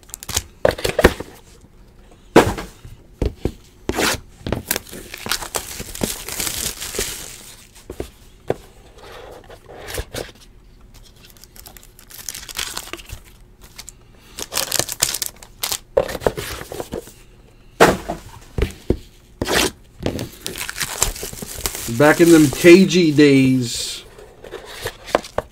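Hands handle a cardboard box, with knocks and scrapes.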